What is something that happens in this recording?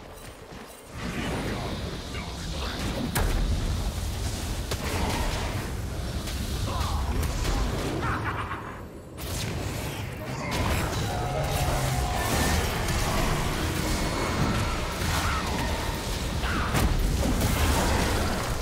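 Magical spells crackle and burst in a fantasy battle.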